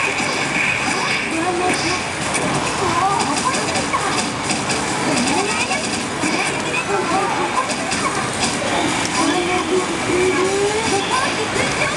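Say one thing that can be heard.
Fast music from a video game plays through a television speaker.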